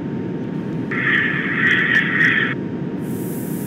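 Another train rushes past close by.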